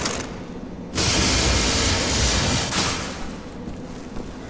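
A cutting torch hisses and crackles loudly through metal.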